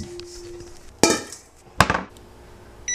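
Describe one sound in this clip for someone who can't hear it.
A metal bowl clanks against a countertop.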